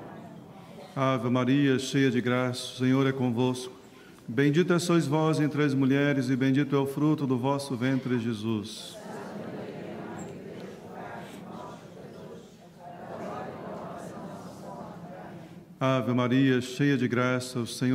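A man chants slowly through a microphone in an echoing hall.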